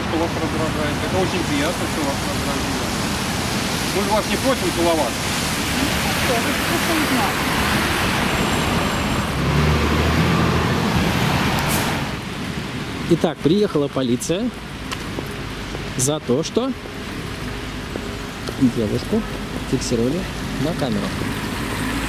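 Traffic rumbles past on a wet road.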